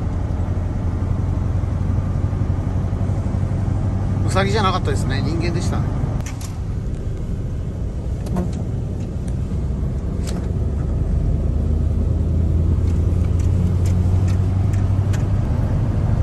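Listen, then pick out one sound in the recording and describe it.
A heavy truck engine rumbles steadily from inside the cab.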